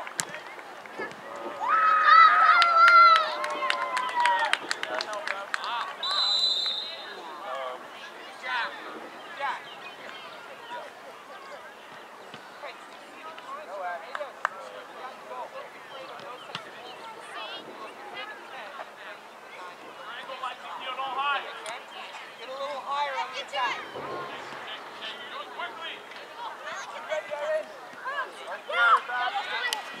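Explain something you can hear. Spectators shout and cheer from a sideline outdoors.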